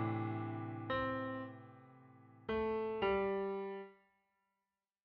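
Piano notes and chords play a short, simple phrase.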